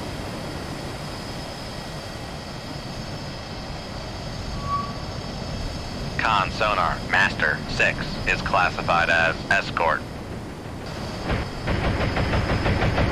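Waves roll and wash across the open sea in a steady wind.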